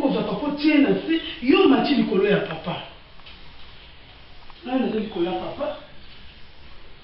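A young woman talks close by.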